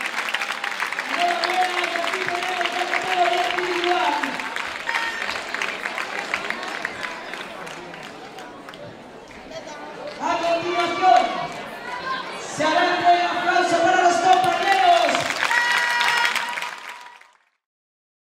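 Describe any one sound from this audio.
A crowd cheers and screams loudly.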